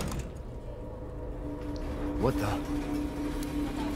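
A heavy metal gate rattles and clanks as it is pushed.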